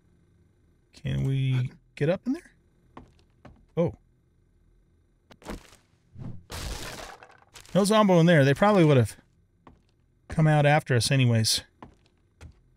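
A middle-aged man talks with animation, close to a microphone.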